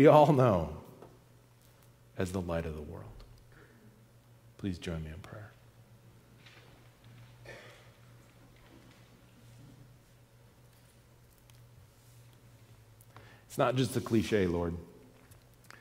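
A man speaks calmly in short phrases through a microphone, with long pauses.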